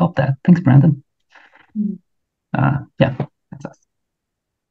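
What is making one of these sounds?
A man speaks cheerfully over an online call.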